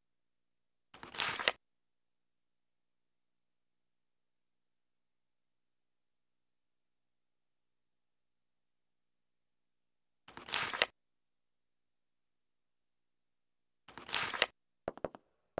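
A short electronic chime sounds as a menu choice is confirmed.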